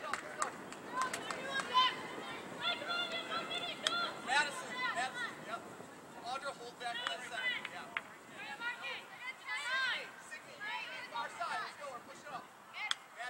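Young girls shout and cheer nearby, outdoors.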